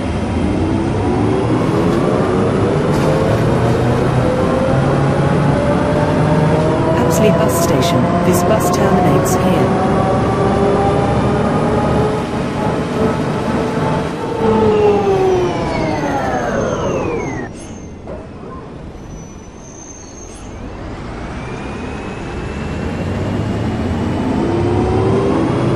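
A bus engine hums and whines up close, dropping in pitch as the bus slows and rising again as it pulls away.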